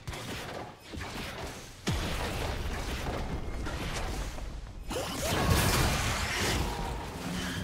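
Video game spells and attacks blast and crackle in quick bursts.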